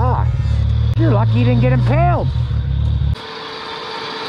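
An off-road vehicle's engine roars and revs.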